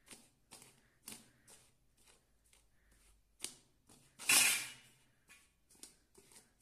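A hand kneads and presses flour dough in a metal bowl with soft rhythmic squishing and thuds.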